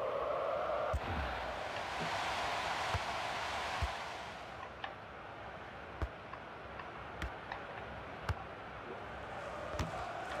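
A football is kicked again and again in short thuds.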